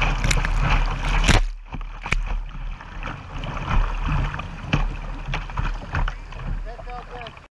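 Whitewater rushes and splashes close by.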